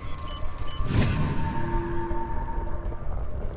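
An electronic chime sounds.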